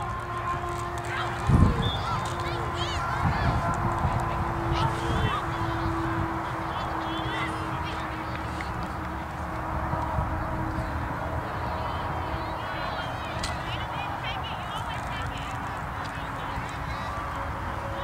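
Young players shout to each other in the distance outdoors.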